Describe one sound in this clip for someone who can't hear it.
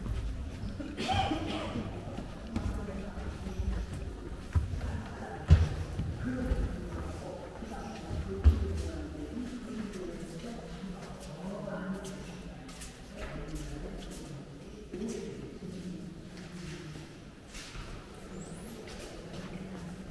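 Men and women murmur and talk nearby in an echoing hall.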